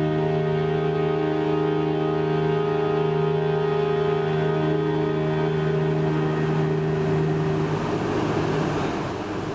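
A string quartet plays a sustained chord in a reverberant hall.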